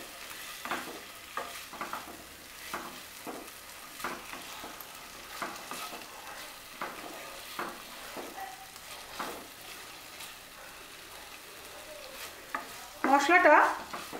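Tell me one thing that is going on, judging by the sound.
A spatula scrapes and knocks against a frying pan as food is stirred.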